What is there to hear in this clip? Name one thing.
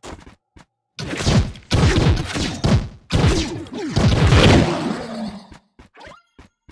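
Loud magic blasts crackle and boom.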